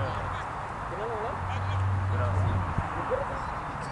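A cricket bat strikes a ball with a sharp knock.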